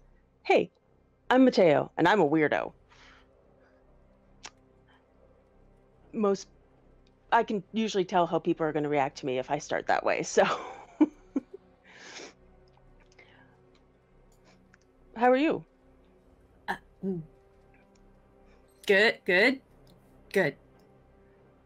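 A woman speaks with animation over an online call, in short bursts with pauses.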